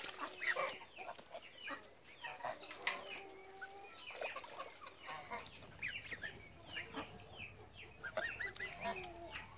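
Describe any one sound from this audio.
Water splashes as ducks bathe in a shallow pool.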